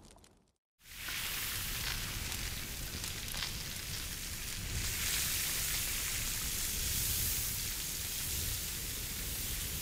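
Flames crackle under a pan.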